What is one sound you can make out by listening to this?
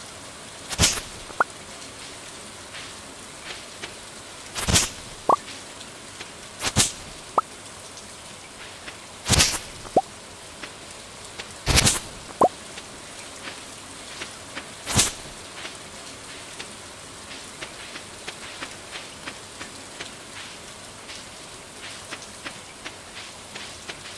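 Soft footsteps patter on grass.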